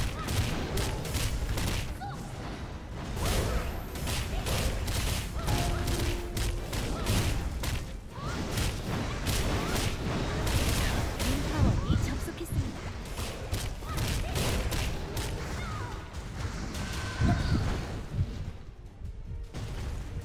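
Weapon strikes clash and thud repeatedly.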